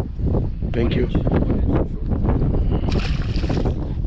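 A fish splashes in the water.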